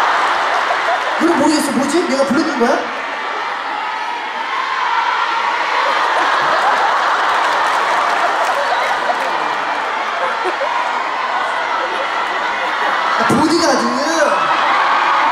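A large crowd cheers and screams steadily.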